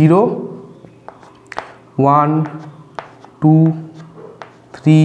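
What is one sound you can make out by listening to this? A man speaks in drawn-out phrases close to a microphone.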